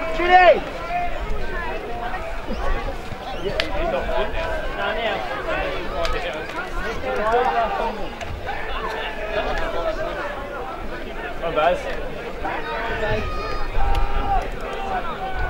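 Young men shout and call to each other outdoors at a distance.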